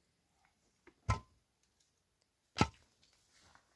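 Concrete blocks knock against each other.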